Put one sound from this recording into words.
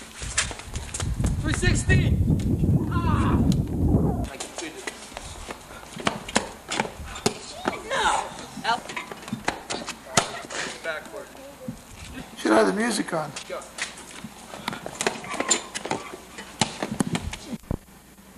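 A basketball bounces on pavement.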